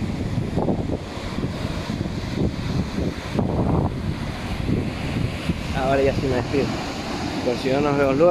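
Waves crash and surge over rocks nearby.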